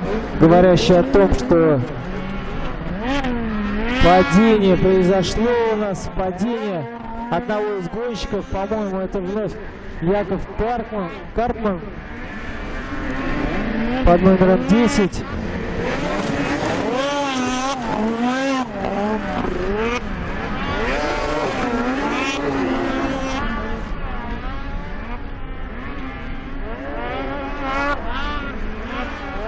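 Snowmobile engines roar and whine as they race past.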